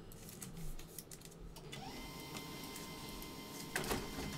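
Hands rustle and tap trading cards close by.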